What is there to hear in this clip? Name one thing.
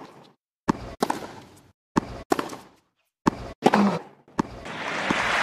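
A tennis ball is struck hard with a racket, back and forth.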